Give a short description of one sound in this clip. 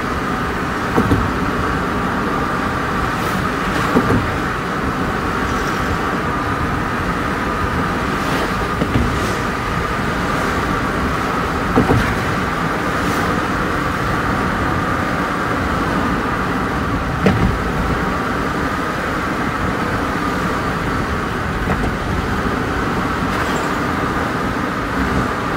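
A vehicle's engine and tyres rumble steadily on a highway.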